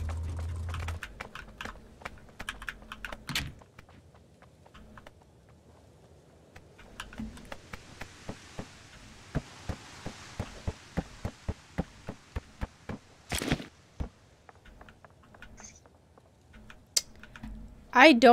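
Footsteps tap quickly on wooden floors.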